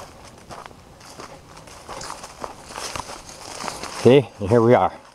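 Leafy branches rustle and brush past close by.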